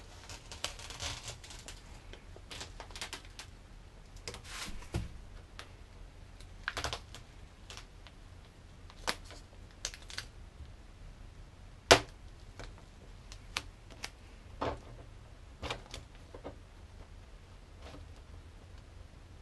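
Masking tape crinkles and rustles as it is handled.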